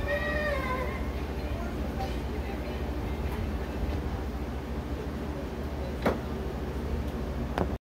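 A ceiling fan whirs and hums steadily.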